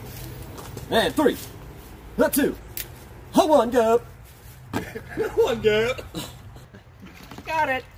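A man exclaims with animation nearby.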